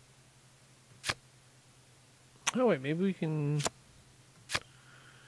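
Playing cards snap into place with short, sharp clicks.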